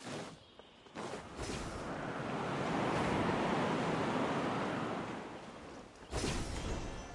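Wind rushes loudly past a glider in flight, swelling and then fading.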